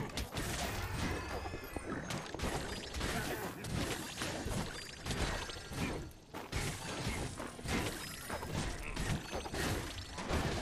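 Weapons clash and magic blasts burst rapidly in a chaotic fight.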